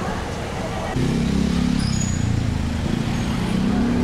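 A motorbike engine hums close by.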